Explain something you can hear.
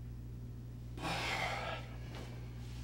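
A man sighs heavily nearby.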